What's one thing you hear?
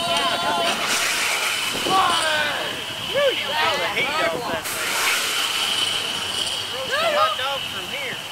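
A gas flame bursts up with a loud roaring whoosh outdoors.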